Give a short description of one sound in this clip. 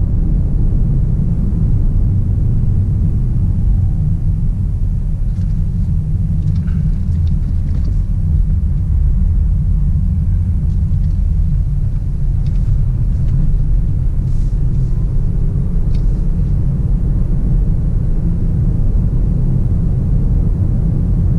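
A car's engine and road noise rumble steadily from inside the car.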